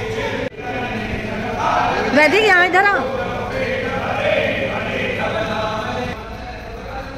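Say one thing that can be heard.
A group of people sing together in a large echoing hall.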